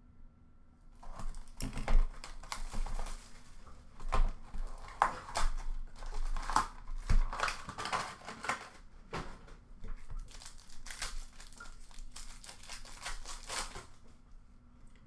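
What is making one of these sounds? Plastic wrapping crinkles and rustles as hands tear open a box.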